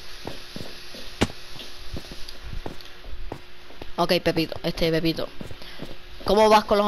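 Footsteps tap on stone at a steady walking pace.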